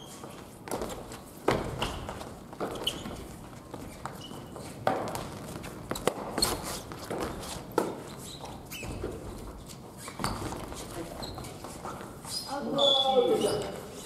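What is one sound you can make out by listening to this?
Shuttlecocks are hit with rackets, with sharp pops echoing in a large hall.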